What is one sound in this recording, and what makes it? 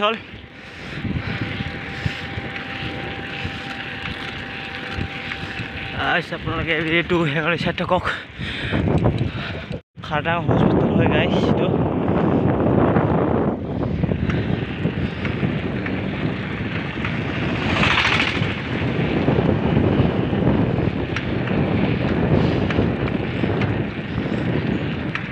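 Wind rushes loudly past a moving vehicle outdoors.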